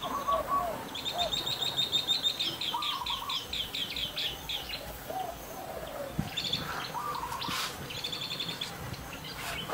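A small bird chirps in quick repeated trills.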